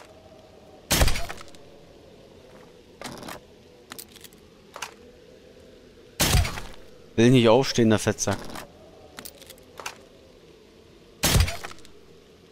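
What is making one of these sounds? A crossbow fires with a sharp thwack, several times.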